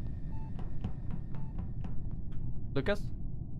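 Quick light footsteps patter across a hard floor.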